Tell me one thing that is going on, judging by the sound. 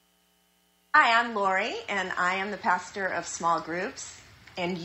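A middle-aged woman speaks warmly through a loudspeaker.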